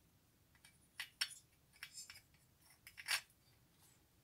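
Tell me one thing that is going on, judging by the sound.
Plastic parts click as they are pressed together.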